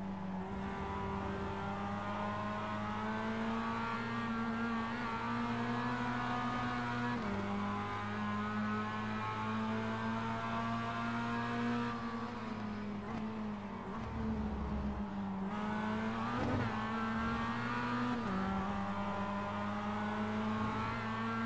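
A racing car engine hums steadily at high revs, shifting gears now and then.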